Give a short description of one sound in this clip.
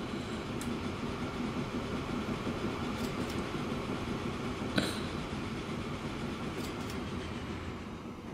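A train rumbles along its tracks.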